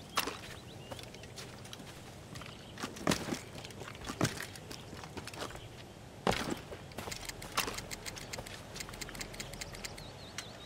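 Footsteps run across grass.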